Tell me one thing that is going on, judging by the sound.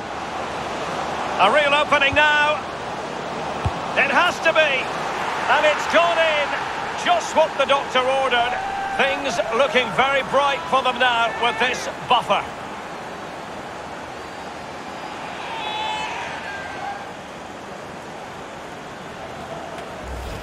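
A large stadium crowd cheers and roars steadily.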